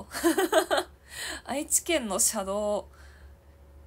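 A young woman laughs softly into a close microphone.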